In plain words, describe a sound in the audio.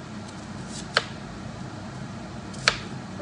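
A knife chops through an onion and taps a cutting board.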